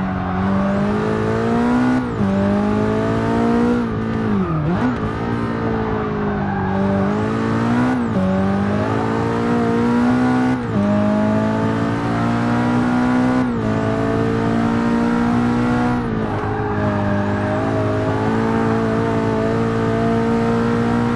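A racing car engine roars loudly, rising in pitch and dropping sharply with each gear shift.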